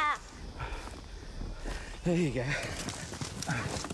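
A spade digs into dry dirt.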